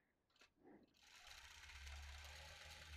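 A quilting machine hums as it starts to run.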